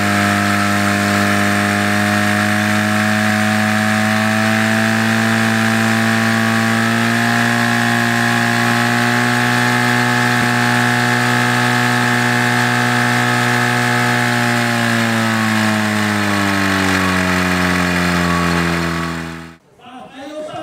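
A portable pump engine runs loudly and steadily, then slows down.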